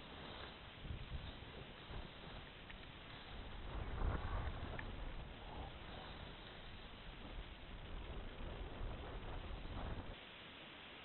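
Wind rushes and buffets in the open air.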